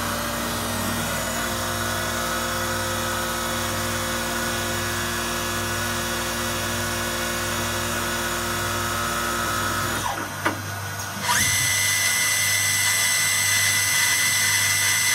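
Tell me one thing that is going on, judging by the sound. A lathe machine hums and whirs steadily.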